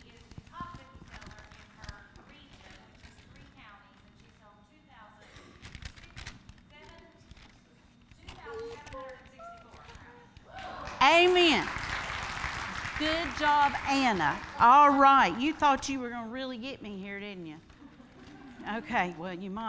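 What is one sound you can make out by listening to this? A woman talks calmly to children through a microphone in a large hall.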